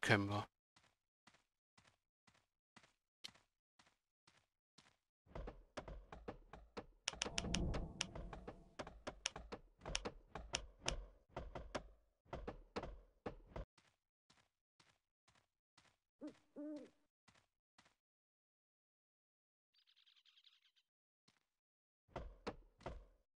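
Footsteps tread in a quick, steady rhythm on dry ground.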